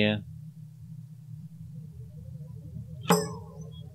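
A short chime sounds.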